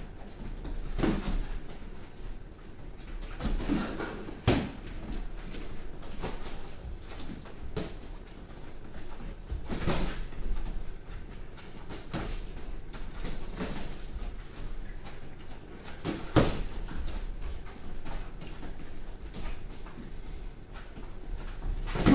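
Boxing gloves thud against each other and on body pads in quick, scattered bursts.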